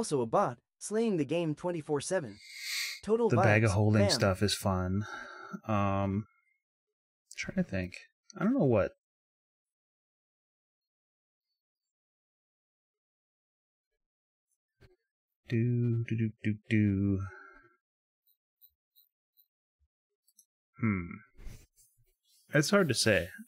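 A man talks casually into a close microphone, with pauses.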